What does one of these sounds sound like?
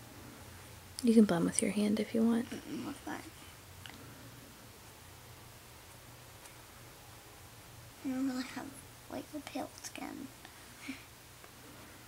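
A young girl speaks close by in a soft voice.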